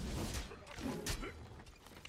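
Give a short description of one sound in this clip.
A heavy weapon swings and strikes with a thud.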